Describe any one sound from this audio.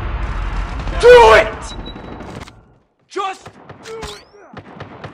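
A man shouts with great energy, close by.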